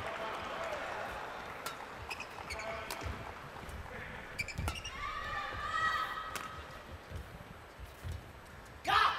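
A shuttlecock is struck sharply back and forth by rackets.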